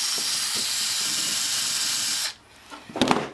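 A wire brush scrubs harshly against metal.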